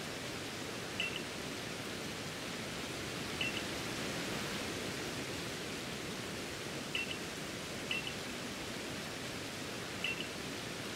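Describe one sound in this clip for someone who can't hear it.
Soft chiming blips sound as dialogue text advances.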